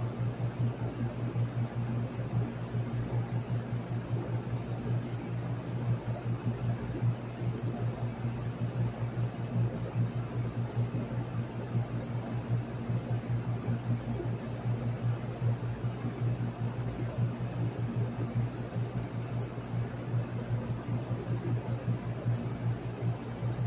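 An outdoor fan unit hums and whirs steadily with a low drone.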